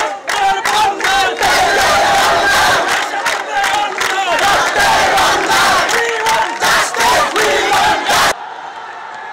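People clap their hands in rhythm.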